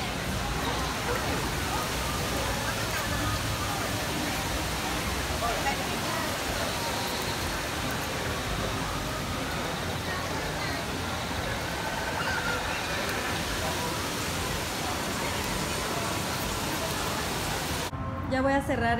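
A crowd chatters in a noisy room.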